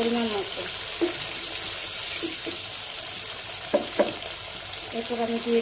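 Sauce bubbles and sizzles in a pan.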